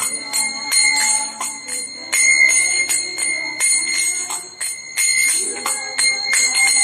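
An elderly man chants into a microphone, close by.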